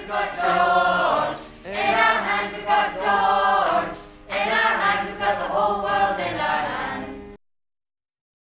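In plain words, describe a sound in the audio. A young woman sings up close.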